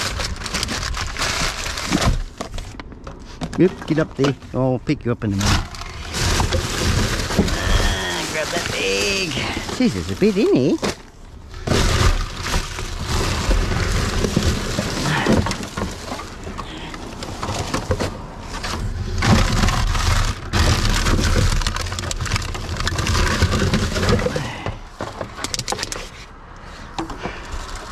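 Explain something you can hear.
Plastic bags and wrappers rustle and crinkle as hands rummage through a bin.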